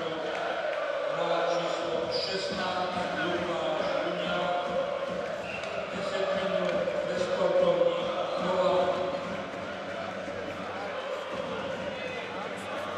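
Ice skates scrape and hiss across the ice in a large echoing arena.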